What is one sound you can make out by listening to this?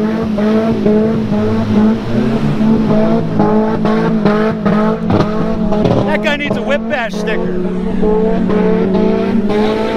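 An off-road vehicle's engine roars and revs in mud.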